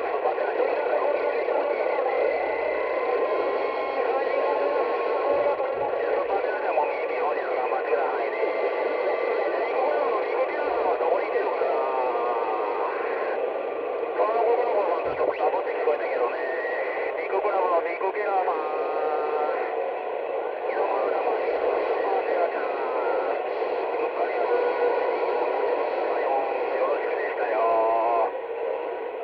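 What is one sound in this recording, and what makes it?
Radio static hisses steadily through a small speaker.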